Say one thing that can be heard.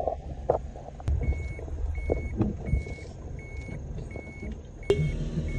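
A car engine hums from inside a moving vehicle.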